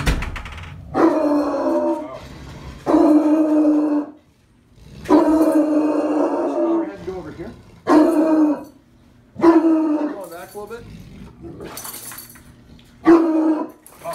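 A dog bays loudly and repeatedly, close by.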